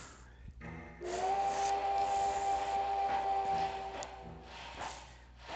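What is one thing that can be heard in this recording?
A steam train whistle blows with a long, steady tone.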